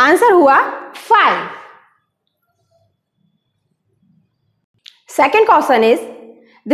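A woman speaks clearly and with animation into a close microphone, pausing between phrases.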